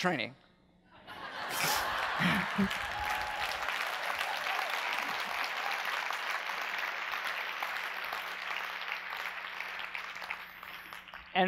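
An audience applauds and cheers.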